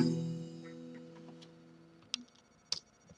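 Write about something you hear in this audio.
An acoustic guitar chord rings out and slowly fades.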